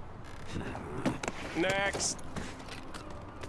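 A brief scuffle thumps and knocks.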